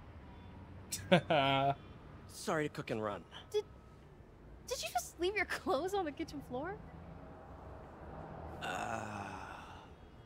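A young man speaks casually.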